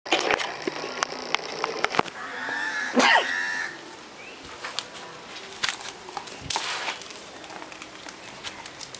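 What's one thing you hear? A dog scuffles and rolls about in the grass.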